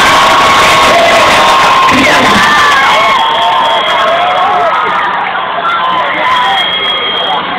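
A large crowd cheers and screams loudly nearby.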